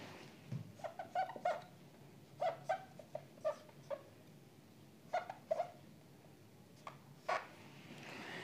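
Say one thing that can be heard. A marker squeaks and taps as it writes on a whiteboard.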